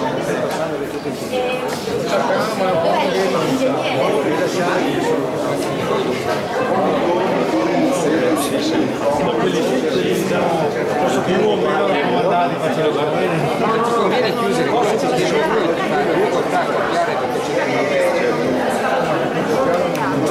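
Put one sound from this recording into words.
A crowd of people chatters close by.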